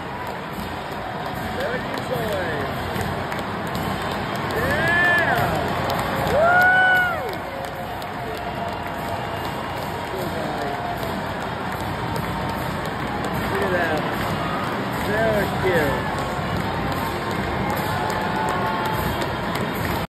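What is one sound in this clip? A large crowd cheers and roars in an open stadium.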